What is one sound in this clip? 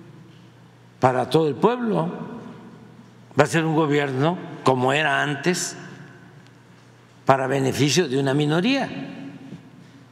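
An elderly man speaks with animation into a microphone, in short bursts.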